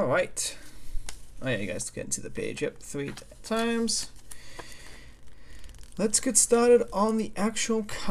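A paper booklet's pages rustle as they are turned.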